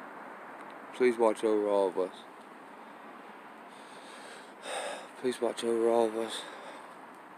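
A man speaks briefly and calmly, close to the microphone.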